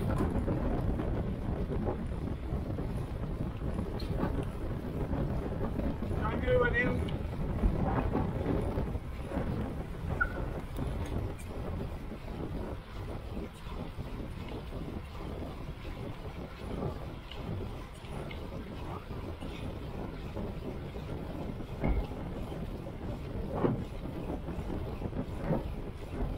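Wind rushes past steadily as a bicycle speeds along a road.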